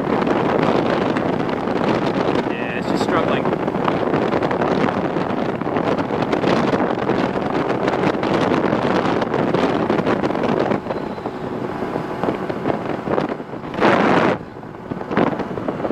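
Wind roars loudly against a rider's helmet at speed.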